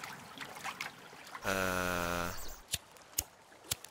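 A lighter clicks and sparks.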